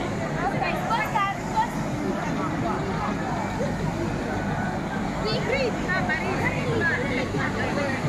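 Children shout and squeal nearby.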